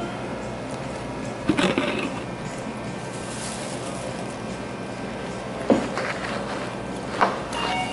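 A paper sheet rustles and crinkles as it is handled.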